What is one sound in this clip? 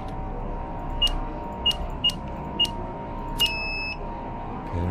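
A keypad beeps with each button press.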